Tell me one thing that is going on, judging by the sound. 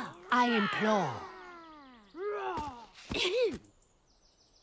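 A cartoon dragon speaks in a cheerful, animated voice.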